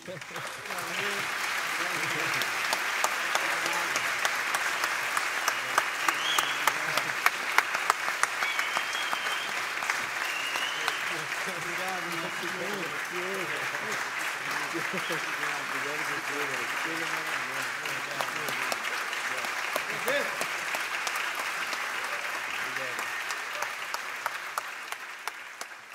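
A man claps his hands in a large hall.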